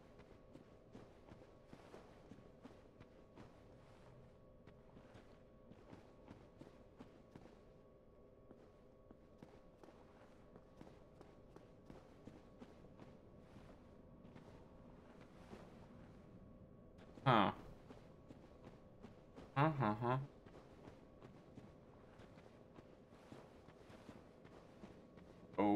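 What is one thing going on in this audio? Footsteps crunch quickly over gravel.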